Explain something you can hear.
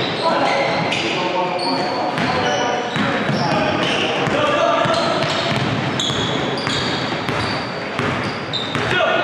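Sneakers squeak sharply on a hardwood floor, echoing in a large hall.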